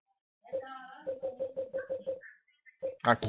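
Short electronic beeps tick in quick, even succession.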